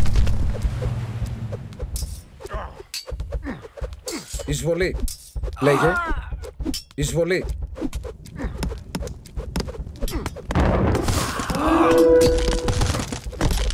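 Swords and weapons clash in a skirmish.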